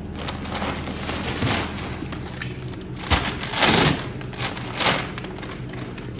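Paper sacks rustle and crinkle as they are handled.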